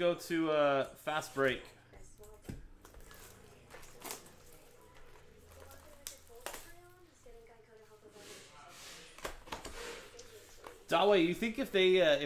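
Cellophane wrapping crinkles and tears off a box.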